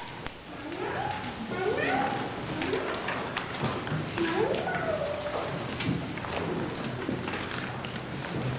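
A man speaks calmly in a large, echoing hall.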